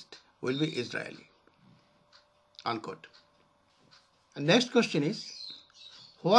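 An elderly man speaks calmly and haltingly, close to a microphone.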